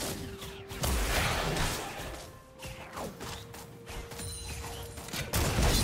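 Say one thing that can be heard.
Game spell effects crackle and whoosh in a fight.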